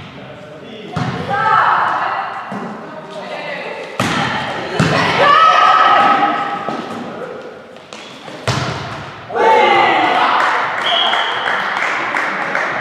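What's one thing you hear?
Young women shout and call out on court, echoing in a large hall.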